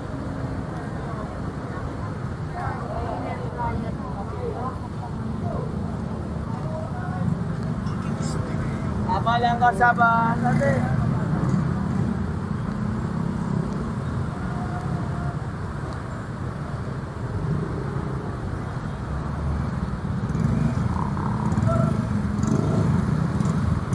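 Traffic rumbles steadily along a nearby road outdoors.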